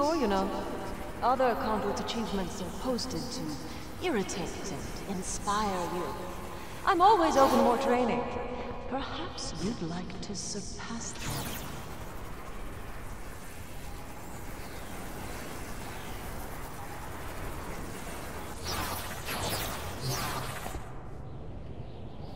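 A crackling energy stream whooshes and fizzes.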